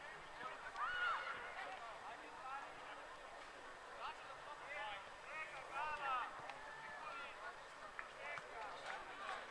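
Young players shout and call to each other from across an open field.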